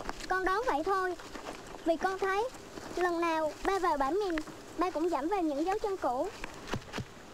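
A young woman speaks softly and tenderly, close by.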